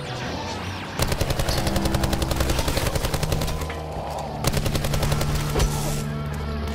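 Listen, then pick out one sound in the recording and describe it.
A rapid-fire gun shoots in quick bursts.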